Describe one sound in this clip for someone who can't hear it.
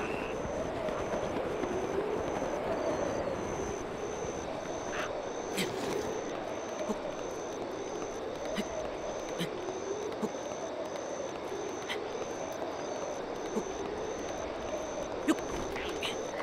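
Short scuffs and grips sound as a figure climbs a rock face.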